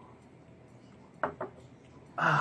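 A glass is set down on a wooden table with a knock.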